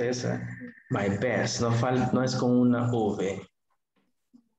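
A man speaks with animation through a headset microphone over an online call.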